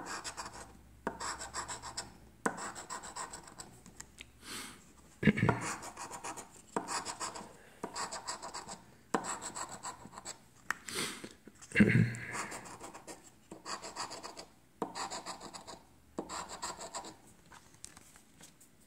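A coin scrapes across a scratch card in quick, rasping bursts.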